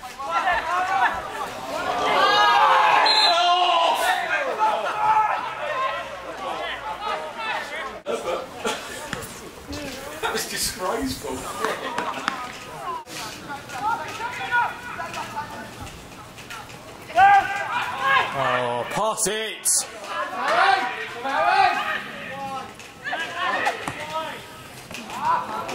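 Young men shout and call out across an outdoor pitch.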